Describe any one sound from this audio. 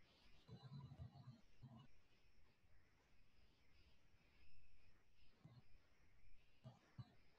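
A young woman speaks softly and calmly, close by, with long pauses.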